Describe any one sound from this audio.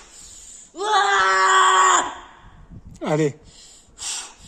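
A young man lets out a long, straining shout outdoors.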